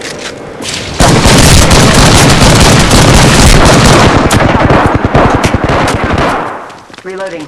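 Rapid video game gunfire rattles loudly.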